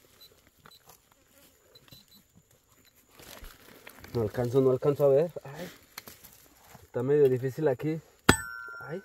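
Pruning shears snip through plant stems.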